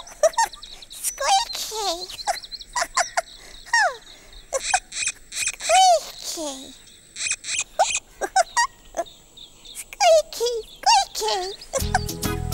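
A high, squeaky character voice chirps and warbles in quick sliding bursts.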